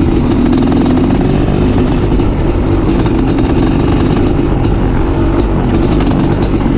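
A dirt bike engine roars loudly and steadily close by.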